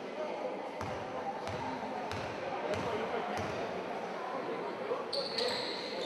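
A basketball bounces on a wooden floor in a large echoing hall.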